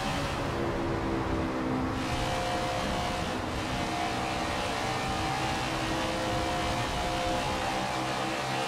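Other race car engines drone close by.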